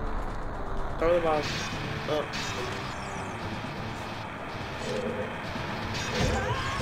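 Sword slashes and chiming effects sound from a video game.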